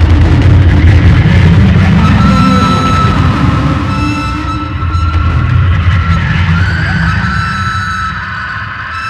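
A metal frame scrapes and rattles across a hard floor.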